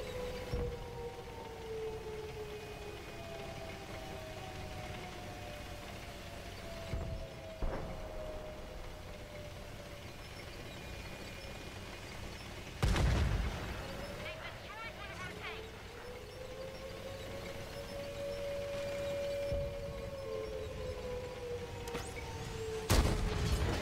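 A tank engine rumbles and whines steadily as the tank drives.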